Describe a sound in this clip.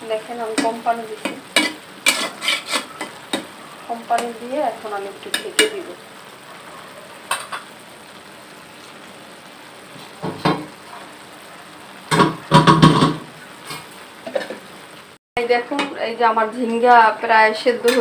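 A spoon scrapes and clinks against a metal pan.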